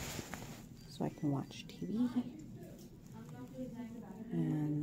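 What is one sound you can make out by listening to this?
A young woman speaks close to the microphone in a calm, low voice.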